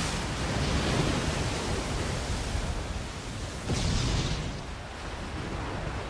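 Water crashes and splashes heavily.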